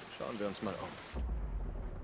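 Water rushes over rocks nearby.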